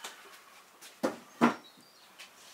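A wooden board knocks down onto a table.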